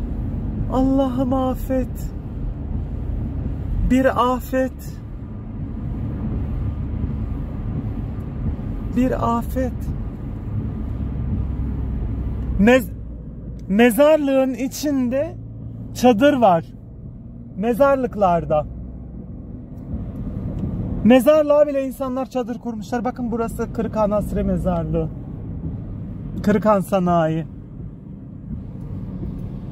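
A car's tyres rumble on the road at speed.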